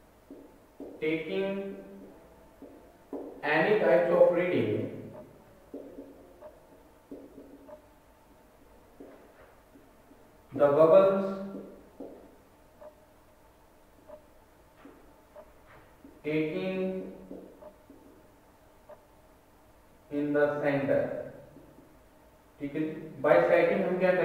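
A man speaks calmly in short phrases, close by, as if lecturing.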